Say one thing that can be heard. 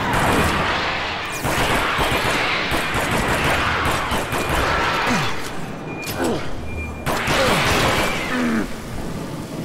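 A creature shrieks and hisses.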